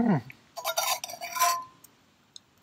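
A spoon clinks against a metal mug.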